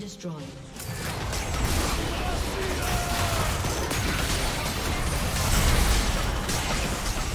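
Video game spell effects crackle and boom during a fight.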